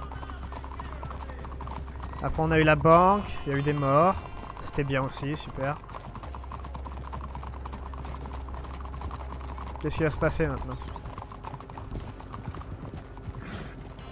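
Horse hooves clop on cobblestones.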